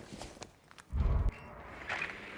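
A small drone lands with a heavy thump.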